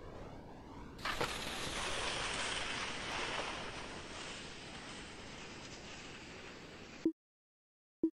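Skis land hard and hiss across snow.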